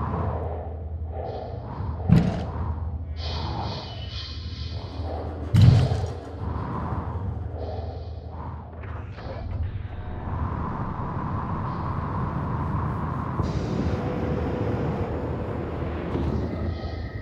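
A spacecraft engine hums low and steadily.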